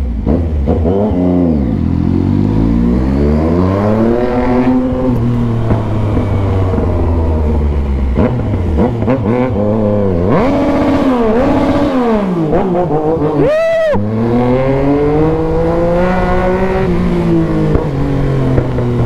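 A motorcycle engine revs up and down again and again as the bike rides close by, shifting through its gears.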